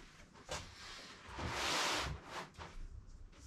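A sheet of cloth rustles as it is spread out.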